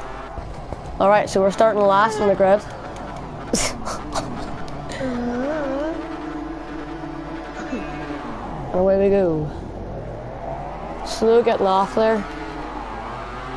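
Motorcycle engines rev loudly on a race track.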